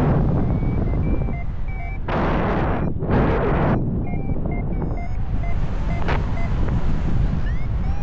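Wind rushes loudly past a microphone, outdoors high in the air.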